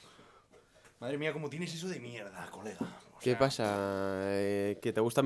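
A young man talks close to a microphone with animation.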